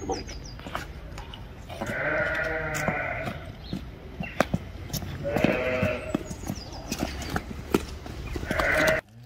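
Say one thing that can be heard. Hooves clop on hard ground as a bull walks.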